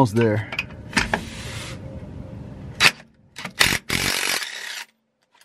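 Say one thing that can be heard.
A power ratchet whirs in short bursts.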